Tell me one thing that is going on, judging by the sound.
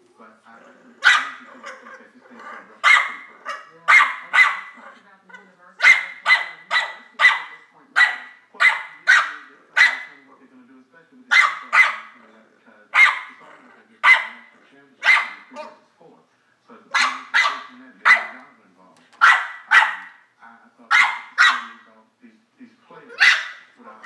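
A dog yelps and whines in short, repeated bursts, close by.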